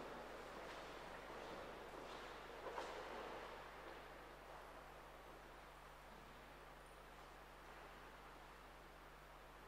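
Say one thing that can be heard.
Footsteps echo faintly in a large, reverberant hall.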